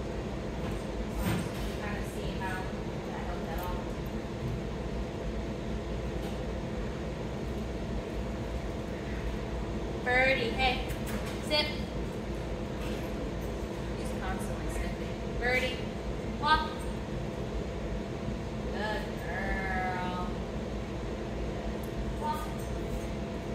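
A young woman speaks brightly and encouragingly to a dog in a large, echoing room.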